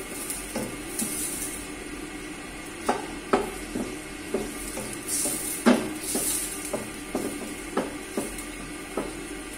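Pieces of vegetable drop into a metal pot.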